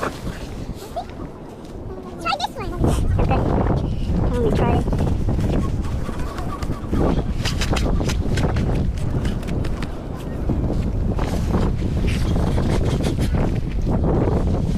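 A metal tube squelches and sucks through wet sand.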